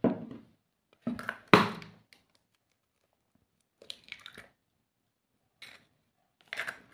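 An egg drops into liquid in a plastic bowl with a soft plop.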